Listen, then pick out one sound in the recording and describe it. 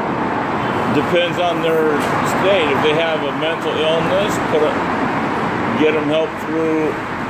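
A man talks nearby.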